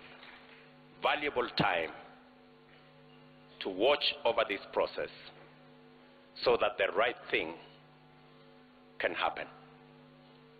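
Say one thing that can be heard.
A man speaks slowly and deliberately into a microphone, in short phrases with pauses.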